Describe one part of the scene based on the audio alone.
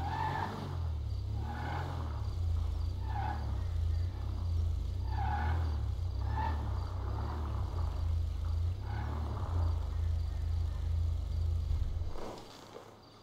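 A car engine rumbles low as the car rolls slowly forward.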